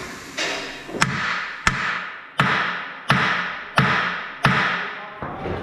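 A hammer strikes metal in a quick series of sharp, ringing blows.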